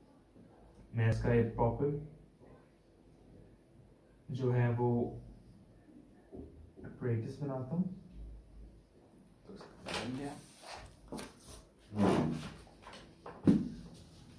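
A young man speaks calmly nearby, explaining in short phrases.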